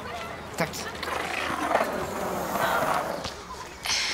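Skateboard wheels roll on asphalt outdoors.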